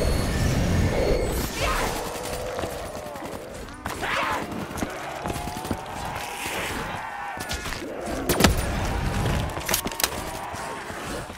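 Zombies growl and moan nearby.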